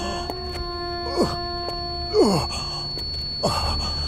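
A man groans in pain close by.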